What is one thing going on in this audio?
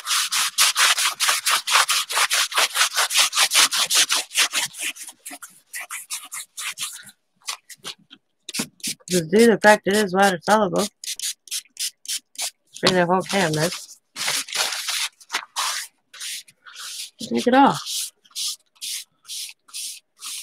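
Paper towel rubs quickly and rhythmically across paper.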